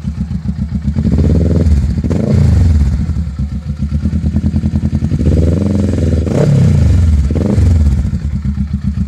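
A motorcycle engine revs up twice in short bursts.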